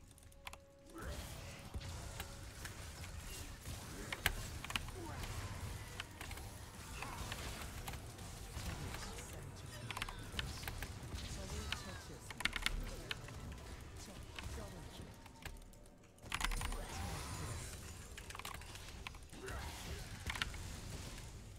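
Magic spells whoosh, crackle and burst in a fast fight.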